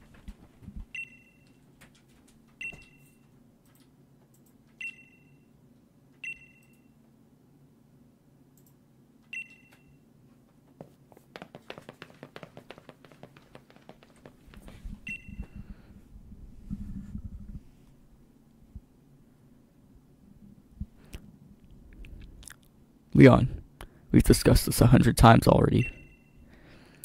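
A short bright electronic chime sounds several times.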